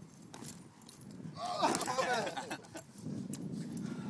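Shoes thud on the ground as a young man jumps down.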